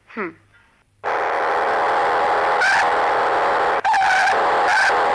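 Motorcycle engines idle and rumble.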